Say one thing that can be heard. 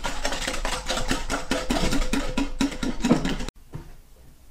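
A whisk beats rapidly against a glass bowl.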